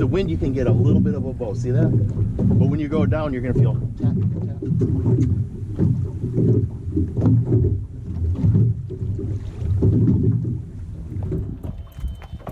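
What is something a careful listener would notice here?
Wind blows across open water.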